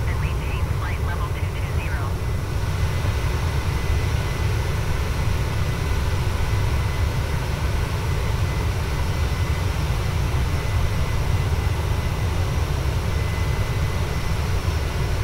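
Jet engines roar steadily as an airliner flies.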